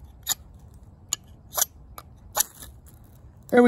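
A metal blade scrapes sharply against a fire steel several times.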